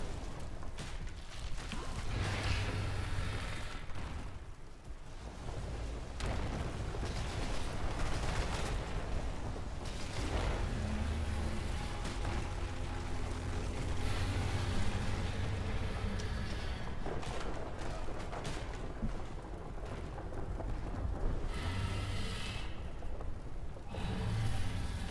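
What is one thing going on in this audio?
Spells crackle and boom in a fast fight.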